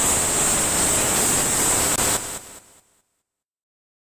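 Loud radio static hisses and crackles, then fades away.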